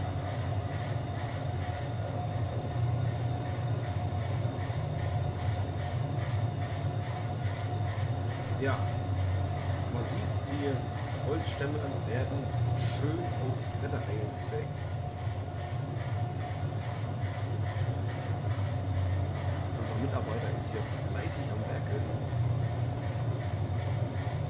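A large saw machine hums and drones steadily.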